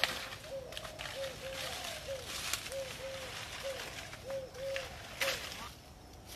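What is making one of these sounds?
Leaves rustle and crackle close by.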